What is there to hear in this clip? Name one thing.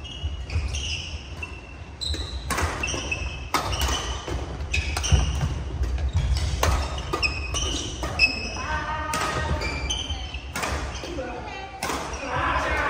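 Badminton rackets strike shuttlecocks with sharp pops.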